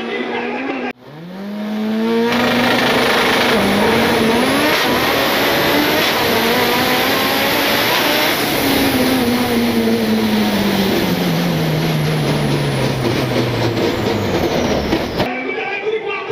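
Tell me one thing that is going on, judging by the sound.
A race car engine revs loudly up close, climbing through the gears and then winding down.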